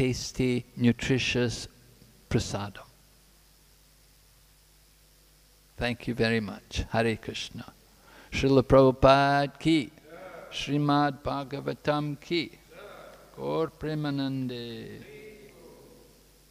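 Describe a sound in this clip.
An elderly man speaks calmly into a microphone, pausing now and then.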